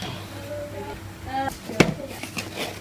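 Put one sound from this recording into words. Scissors snip through cardboard.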